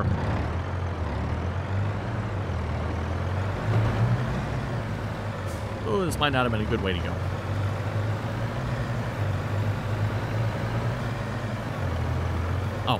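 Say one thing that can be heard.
A truck engine rumbles steadily as the truck drives slowly.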